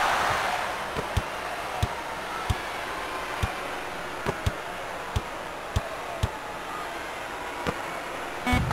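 A basketball thumps on a hard floor in steady dribbles.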